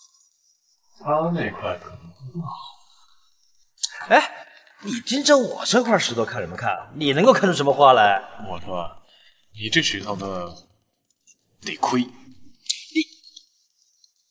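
A man speaks with surprise and mockery close by.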